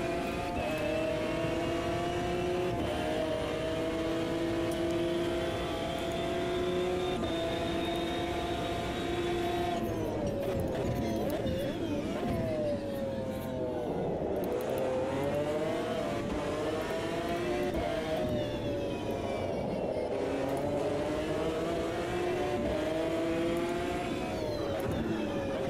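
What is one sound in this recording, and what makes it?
A racing car engine roars at high revs, shifting up through the gears and dropping down as it brakes for corners.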